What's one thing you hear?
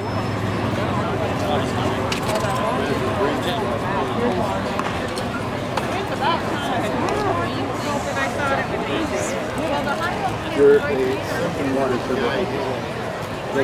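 A crowd murmurs and chatters steadily outdoors in a large open space.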